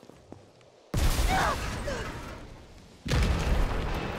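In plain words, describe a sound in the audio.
A loud blast bursts out with crackling sparks.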